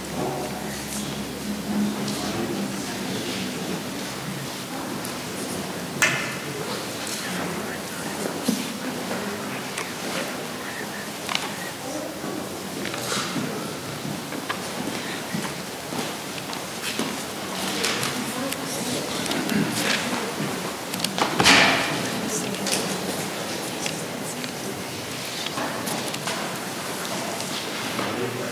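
A crowd of men and women chats and murmurs in a large echoing hall.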